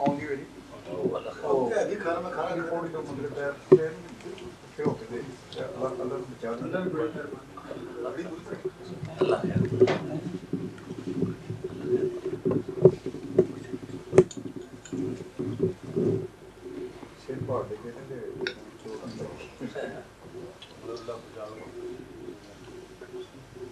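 Men talk and chat nearby.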